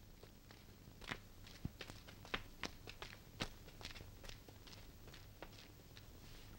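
Footsteps patter on hard ground.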